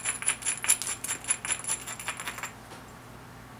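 A stone tool presses and clicks sharply against a flint flake.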